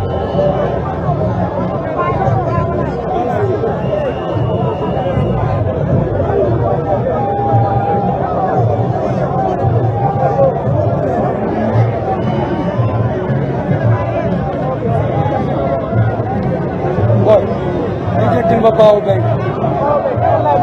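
A large crowd outdoors cheers and chants loudly.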